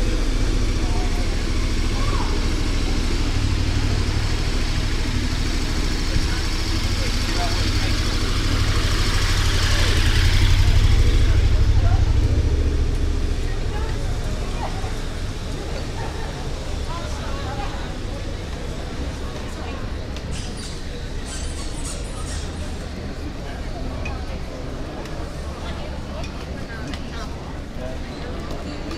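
A crowd of people murmurs and chatters outdoors.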